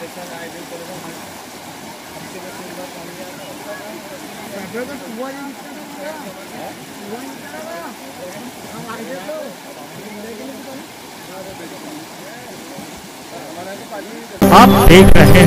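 Water splashes as people wade through it.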